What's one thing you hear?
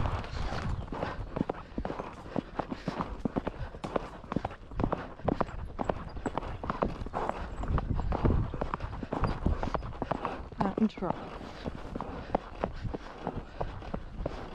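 A horse's hooves thud steadily on grass and dirt.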